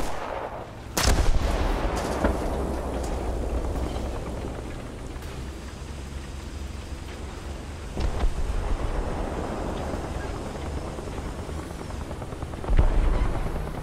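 Shells explode with loud, booming blasts nearby.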